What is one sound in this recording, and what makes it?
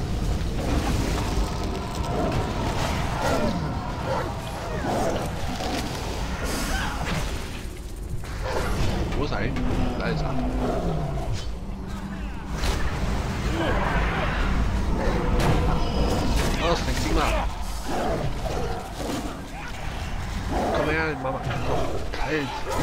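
Magic spells whoosh and crackle during a fight.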